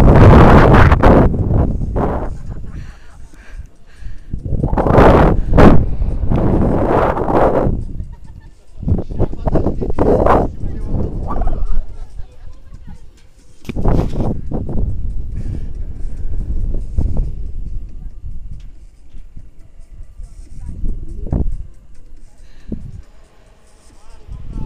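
Wind gusts buffet loudly over the microphone outdoors, rising and falling.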